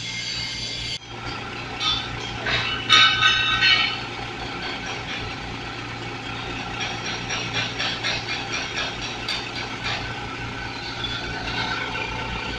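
A drill bit grinds into metal with a high scraping whine.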